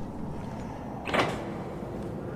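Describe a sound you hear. A button clicks on a control panel.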